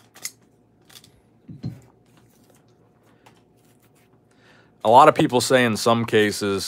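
A foil wrapper crinkles as it is peeled open.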